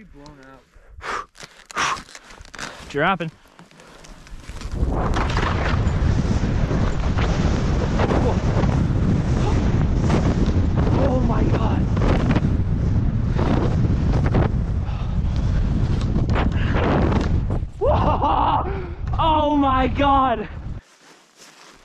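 Skis hiss and swish through deep powder snow.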